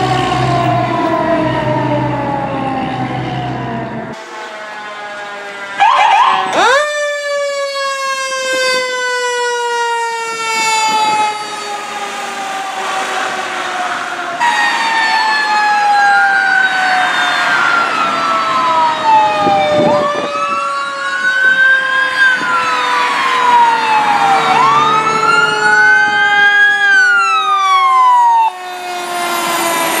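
A fire truck's air horn blares loudly and steadily, slowly dropping in pitch.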